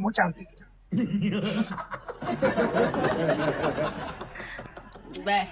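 A young man laughs loudly over an online call.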